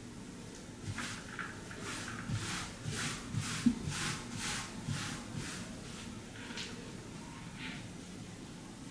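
A cloth rubs back and forth across a wooden table.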